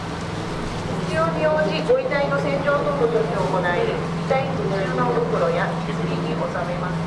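A man speaks through a megaphone in an echoing hall.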